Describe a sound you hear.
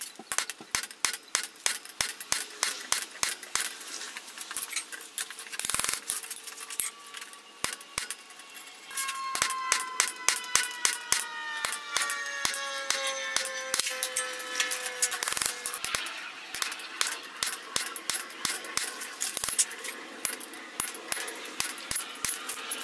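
A hammer strikes a punch into hot metal in quick, ringing blows.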